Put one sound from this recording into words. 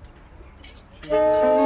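A saxophone quartet begins to play a loud chord.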